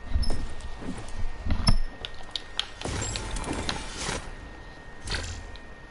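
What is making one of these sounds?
A rushing whoosh sweeps up as a character is launched into the air.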